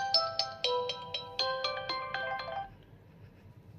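A phone plays a bright, chiming ringtone that stops abruptly.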